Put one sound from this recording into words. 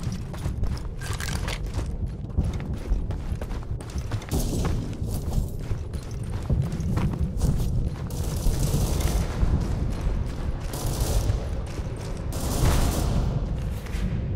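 Heavy boots thud quickly on hard ground as a soldier runs.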